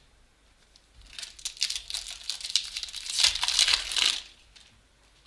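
Trading cards rustle and scrape close by.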